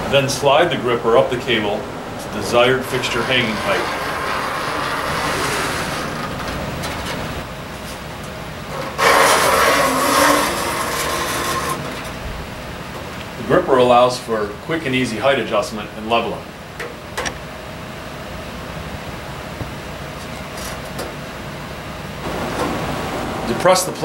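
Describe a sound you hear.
Thin cables click and scrape as hands adjust them.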